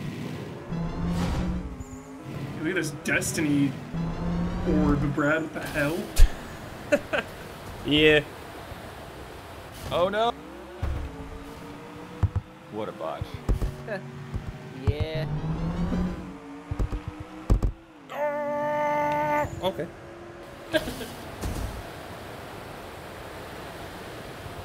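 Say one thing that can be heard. A car engine revs and whooshes.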